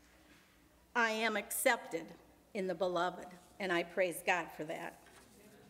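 A middle-aged woman reads aloud calmly into a microphone.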